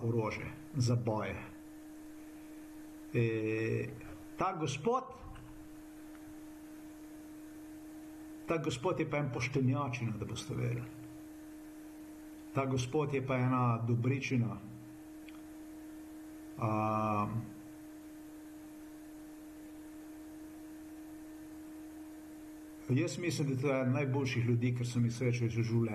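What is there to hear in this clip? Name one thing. A middle-aged man speaks calmly into a nearby microphone, in short bursts with pauses.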